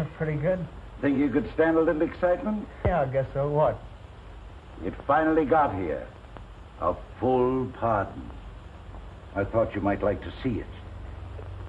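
An elderly man speaks cheerfully.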